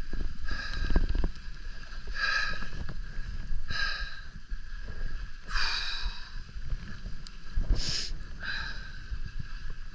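Skis scrape and hiss over packed snow in repeated bursts.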